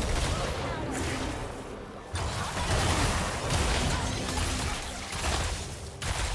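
Spell effects and blows crackle and whoosh in a video game fight.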